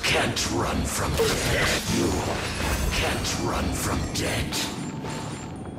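Magic blasts burst and shatter with sharp crackling whooshes.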